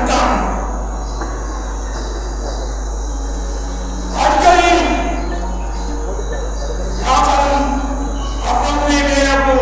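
An elderly man chants slowly into a microphone, heard through loudspeakers.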